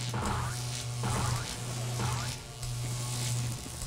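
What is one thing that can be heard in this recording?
Electricity crackles and zaps in short bursts.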